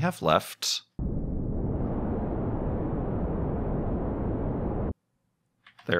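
A rocket engine roars steadily, then cuts off.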